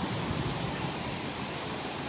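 A swollen stream rushes below.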